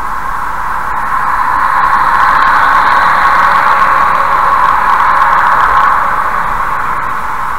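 A lorry roars past close by, swelling and then fading.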